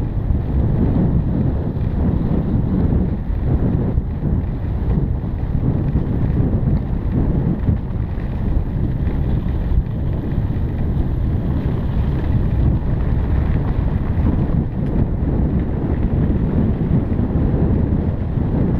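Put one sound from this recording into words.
Wind buffets loudly against the microphone.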